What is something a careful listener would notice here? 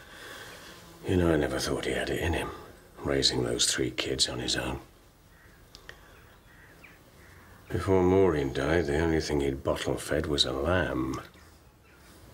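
An elderly man speaks calmly and quietly, close by.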